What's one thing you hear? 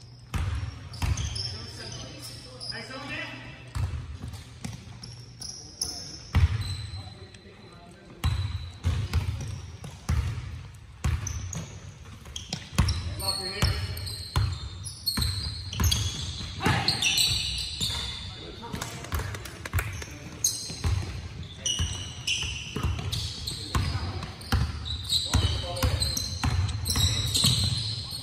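Basketballs bounce on a wooden floor in a large echoing gym.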